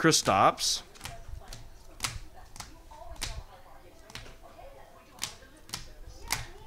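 Hard plastic card cases click and tap as they are handled.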